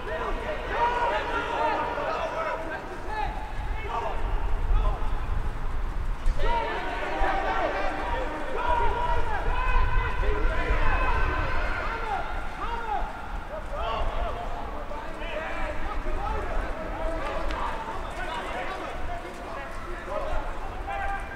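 Rugby players shout to each other across an open field.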